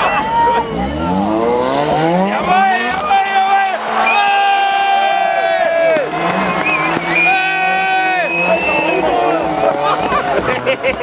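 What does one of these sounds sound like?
A rally car engine revs hard and roars past close by.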